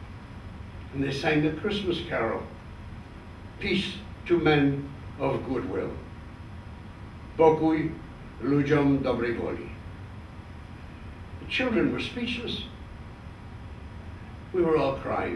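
An elderly man speaks slowly and calmly, pausing between phrases.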